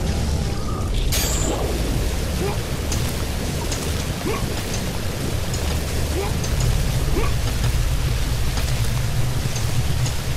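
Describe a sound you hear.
Water pours down in a steady rush.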